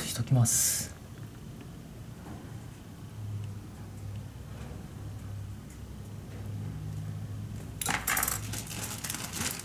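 Metal parts click and scrape against an engine.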